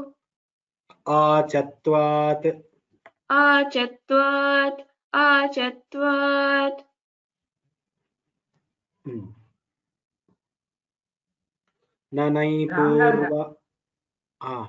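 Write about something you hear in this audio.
A man chants lines in a lower voice through an online call.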